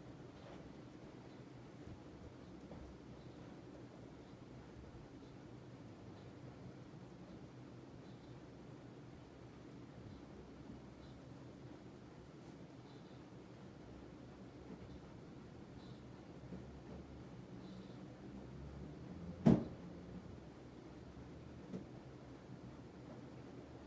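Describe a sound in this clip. A ceiling fan whirs steadily with a low hum.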